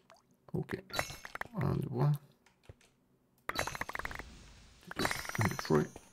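Stone blocks crack and shatter in quick bursts.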